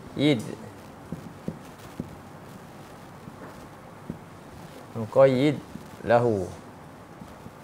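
A young man speaks calmly in short phrases.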